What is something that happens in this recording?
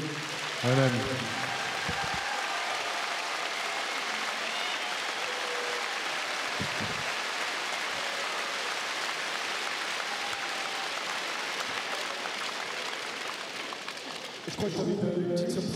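A crowd applauds and cheers.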